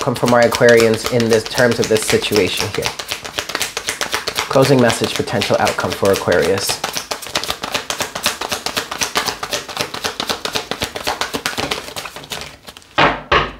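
Playing cards riffle and flutter rapidly as they are shuffled.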